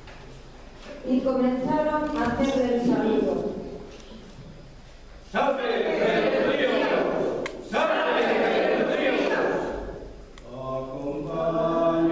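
A group of adults sings and calls out loudly in an echoing hall.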